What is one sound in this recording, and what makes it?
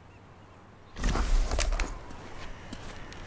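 Leaves rustle loudly as someone pushes through a bush.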